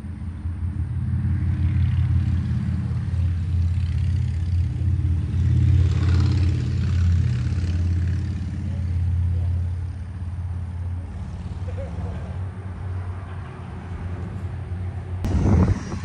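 A machine hums loudly and steadily nearby.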